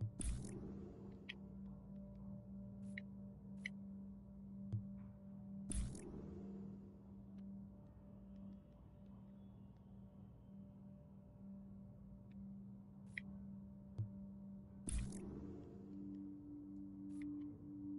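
Short electronic menu clicks and swooshes sound now and then.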